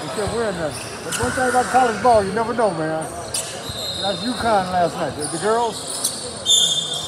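Men and teenage boys shout and cheer in a large echoing hall.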